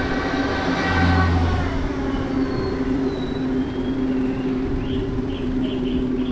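Traffic hums steadily in the distance on an open street.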